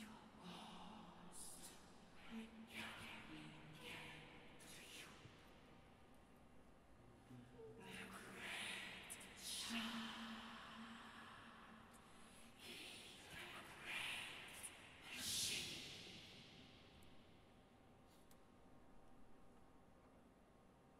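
A choir of men and women chants loudly in a large echoing hall.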